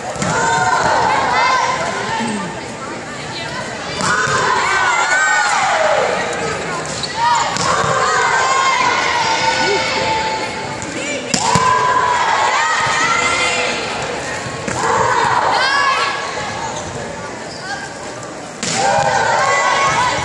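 Young women call out and chatter around the hall.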